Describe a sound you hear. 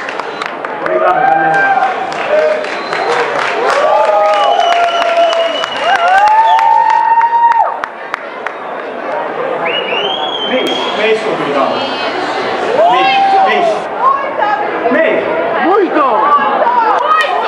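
A young man shouts and sings loudly through a microphone over a loudspeaker.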